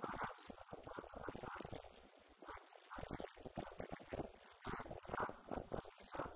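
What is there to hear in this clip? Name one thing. A man speaks steadily into a microphone, heard through a loudspeaker in an echoing room.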